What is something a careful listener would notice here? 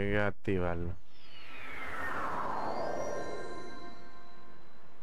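A shimmering magical whoosh sweeps downward in pitch.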